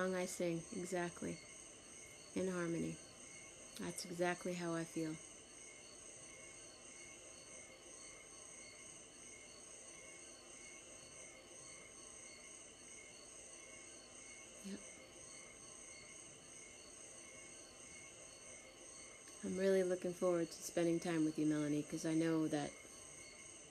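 A woman speaks warmly and cheerfully, close to a microphone, as if on an online call.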